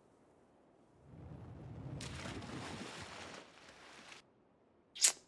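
Water splashes heavily as something plunges in.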